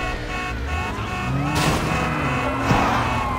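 A motorcycle engine revs past.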